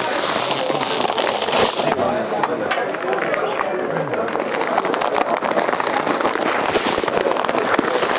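Heavy sacks thud and rustle as they are lifted.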